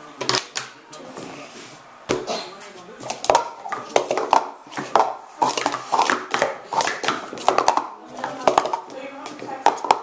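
Plastic cups clatter and click rapidly as they are stacked and unstacked on a table.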